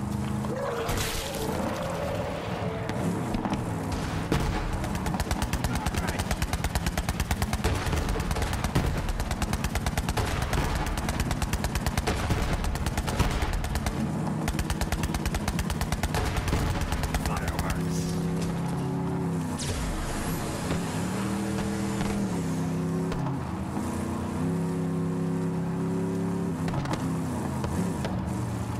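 A buggy engine drones and revs steadily.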